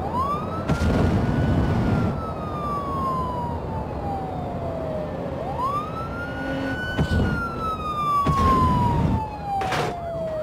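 A heavy truck engine revs up and drops in pitch as gears shift.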